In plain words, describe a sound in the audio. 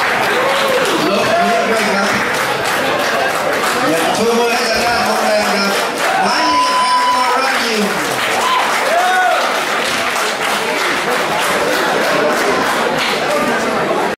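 A large crowd cheers and chatters loudly.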